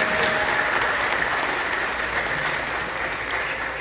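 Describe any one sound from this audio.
Several people clap their hands in a steady rhythm in a large echoing room.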